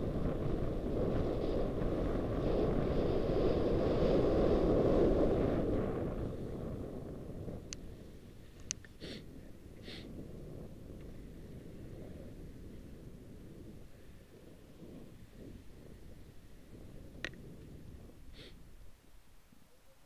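Skis hiss and scrape over the snow.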